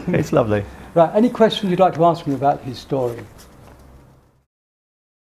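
An older man talks and laughs close to a microphone.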